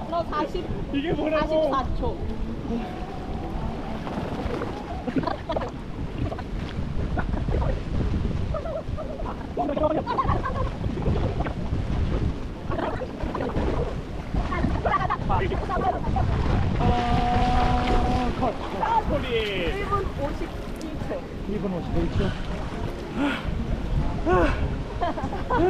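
Young men talk and laugh close by, outdoors.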